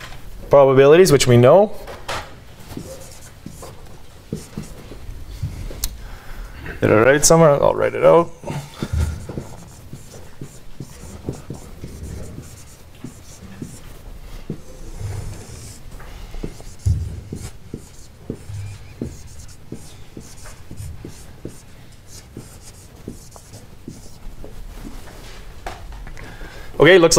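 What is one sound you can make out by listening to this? A man speaks in short bursts, lecturing.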